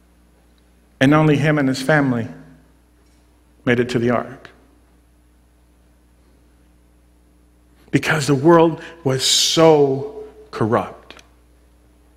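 A man speaks with animation in short bursts, heard through a microphone in an echoing hall.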